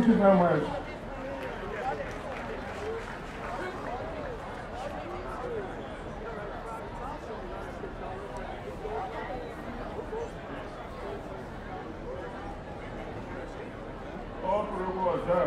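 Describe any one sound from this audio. A crowd chatters.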